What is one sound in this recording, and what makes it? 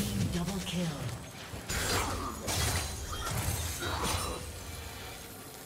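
Electronic spell blasts and hits burst repeatedly in a video game fight.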